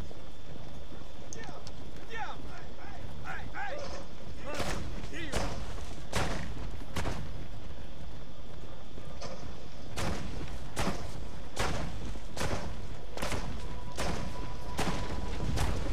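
A horse gallops, hooves thudding on a dirt path.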